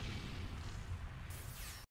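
A blade swooshes through the air.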